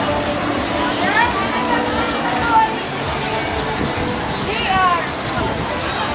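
Children shout and squeal in the distance.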